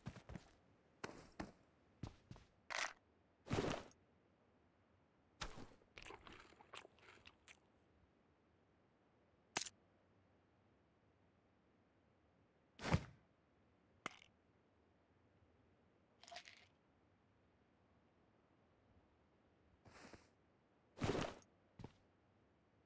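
Gear rustles and clicks as items are picked up and used.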